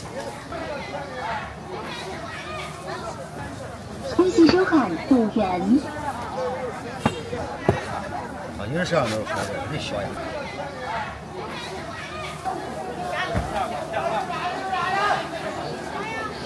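A crowd of people chatters in a busy outdoor market.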